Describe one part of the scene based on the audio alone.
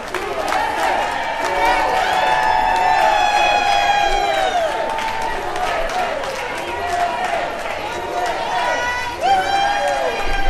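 A large crowd cheers and whoops loudly in an echoing hall.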